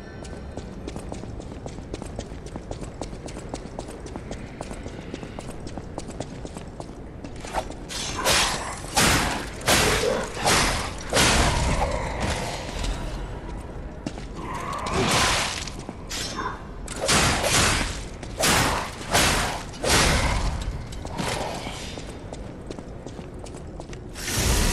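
Footsteps clatter on a hard stone floor.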